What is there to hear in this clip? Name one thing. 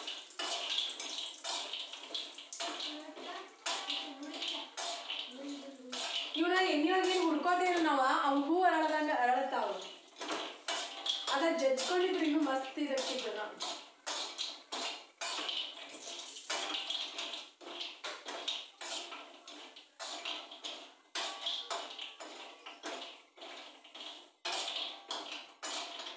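A metal spatula scrapes and clinks against a frying pan.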